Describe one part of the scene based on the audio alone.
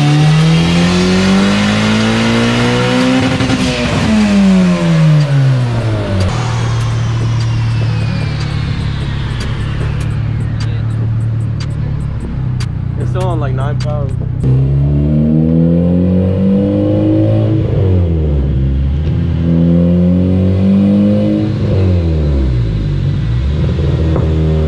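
A car engine revs loudly, its roar rising and falling again and again.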